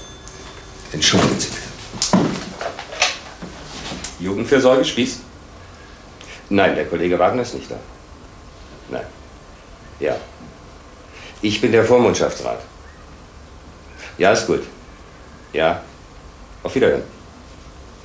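A middle-aged man speaks calmly into a phone.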